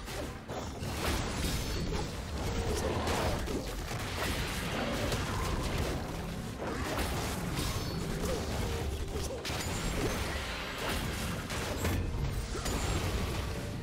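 Magic blasts and impacts crackle and burst in a fast fight.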